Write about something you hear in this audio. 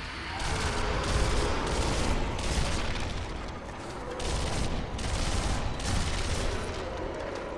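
A submachine gun fires rapid bursts.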